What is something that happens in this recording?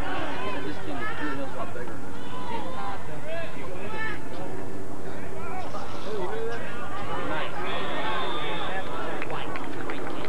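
Young players shout to each other far off across an open field.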